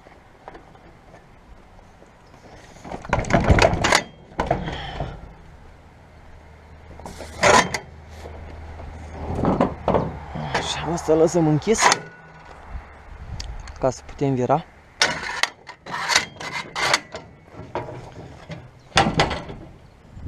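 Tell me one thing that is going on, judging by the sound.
Metal latches and side panels clank and bang.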